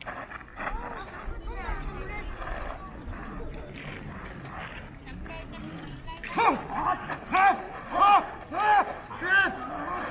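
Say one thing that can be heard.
Swords clack together.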